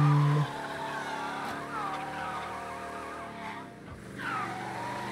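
Car tyres screech in a skid.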